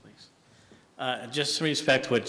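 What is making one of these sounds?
A middle-aged man speaks into a microphone in an echoing hall.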